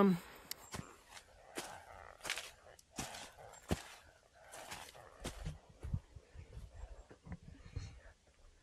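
Footsteps crunch on dry leaves and stones.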